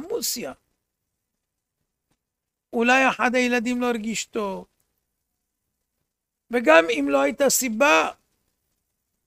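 An elderly man chants a melody in short phrases, close to a microphone.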